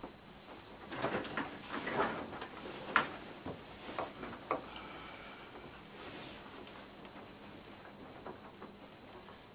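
A man shuffles and rustles about close by.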